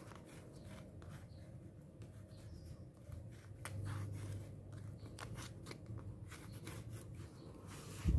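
Tape is peeled and pressed onto paper.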